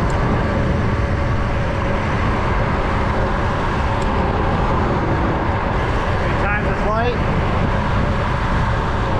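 Wind rumbles steadily over a moving car.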